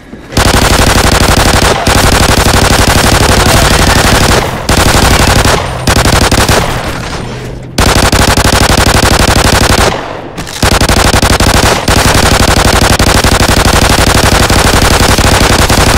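A pistol fires repeated loud shots.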